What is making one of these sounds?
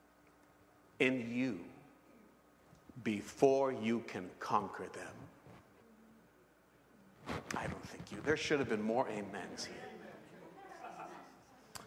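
A middle-aged man preaches with animation into a microphone.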